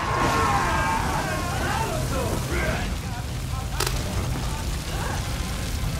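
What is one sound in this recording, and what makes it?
Fire roars and crackles nearby.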